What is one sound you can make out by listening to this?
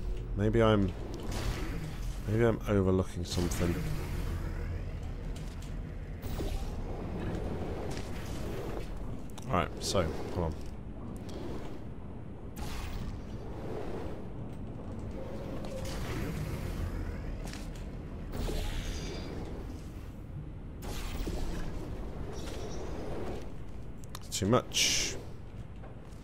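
Game sound effects whoosh and hum as portals open and close.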